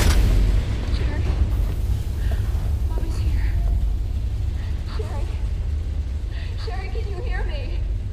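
A young woman calls out anxiously nearby.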